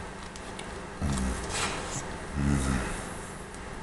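A man speaks briefly in a low voice, close by.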